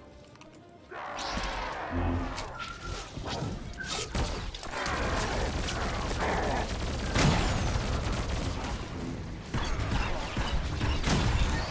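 Energy blasts and magic effects crackle and boom in a fight.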